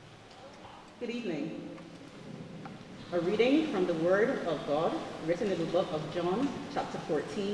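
A woman speaks into a microphone, heard through loudspeakers in an echoing hall.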